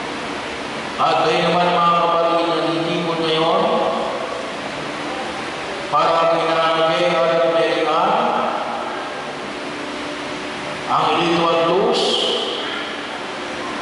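A man chants in song, echoing through a large hall.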